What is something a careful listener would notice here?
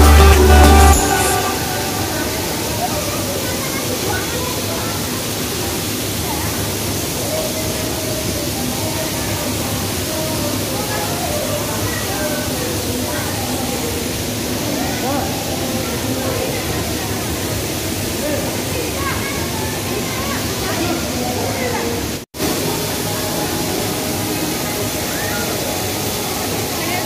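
A crowd of men, women and children chatters nearby.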